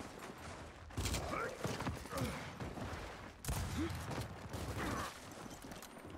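Gunfire bursts out in loud, rapid blasts.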